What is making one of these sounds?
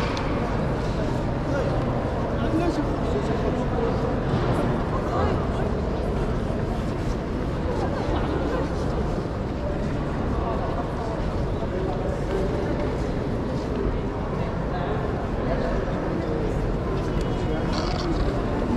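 Suitcase wheels roll along a hard floor.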